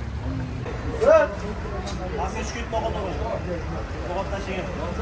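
Men talk nearby in a lively outdoor crowd.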